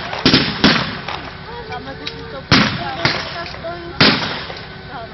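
Guns fire loud shots in the open air, each blast echoing away.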